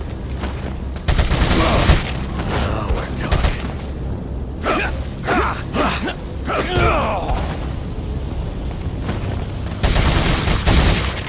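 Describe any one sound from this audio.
A gun fires rapid loud shots.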